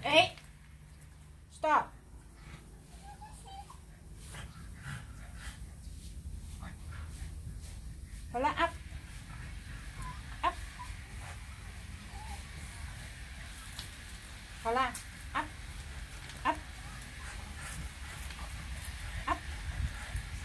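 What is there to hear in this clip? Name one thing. A puppy whines in short, high cries now and then.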